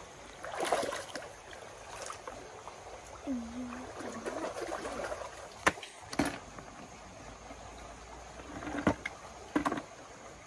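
A plastic bucket knocks and scrapes.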